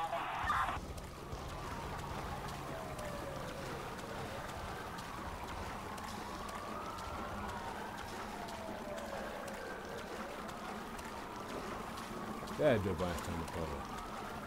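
Water splashes as a man swims through choppy waves.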